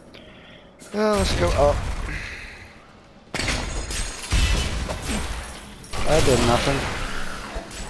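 Game monsters growl and shriek.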